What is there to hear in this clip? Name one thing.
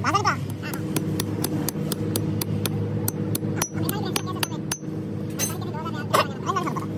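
A hammer strikes metal with sharp knocks.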